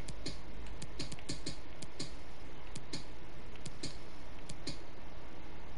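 Short menu clicks tick in quick succession.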